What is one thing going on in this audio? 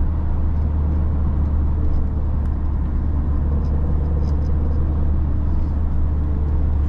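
A small car's engine hums steadily from inside the cabin.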